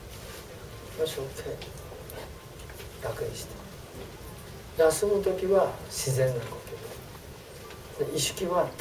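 An elderly man speaks calmly through a clip-on microphone.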